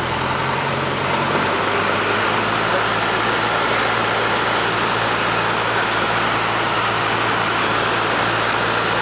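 A small plane's propeller engine drones loudly and steadily.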